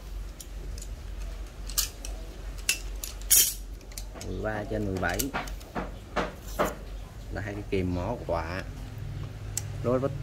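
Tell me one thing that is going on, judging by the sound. Metal hand tools clink as they are picked up and handled.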